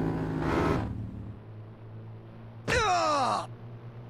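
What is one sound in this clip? A body thuds onto the ground.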